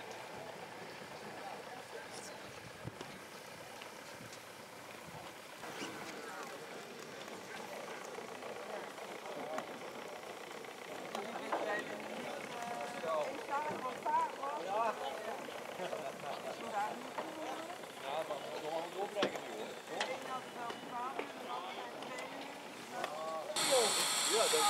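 A small steam engine puffs and hisses softly.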